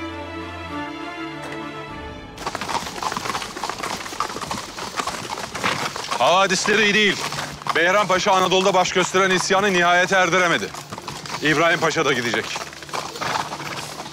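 Horses' hooves clop along a gravel track.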